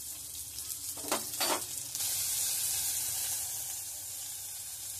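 Chopped vegetables drop into a pan with a soft thud.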